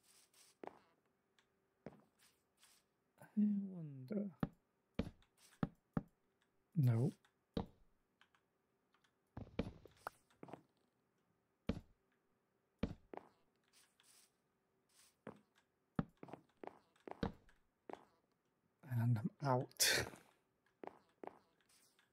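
Wooden blocks are placed with short, dull knocks.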